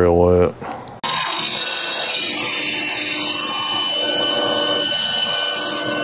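A lathe motor starts and hums steadily.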